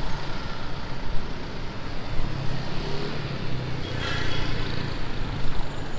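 A motor scooter engine hums close by.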